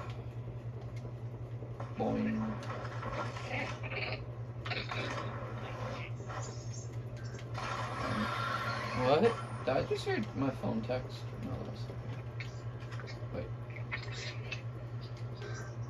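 Video game sound effects play through a television's speakers.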